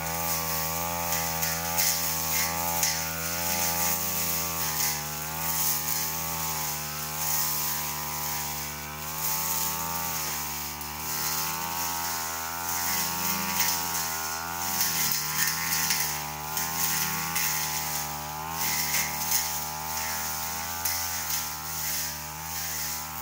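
A brush cutter engine whines steadily, its pitch rising and dipping as it works.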